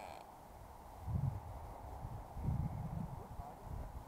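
Wind gusts outdoors and buffets the microphone.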